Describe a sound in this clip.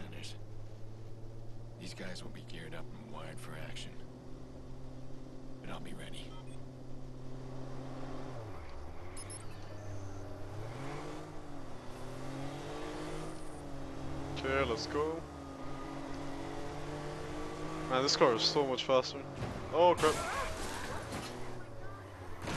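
A car engine hums steadily and revs.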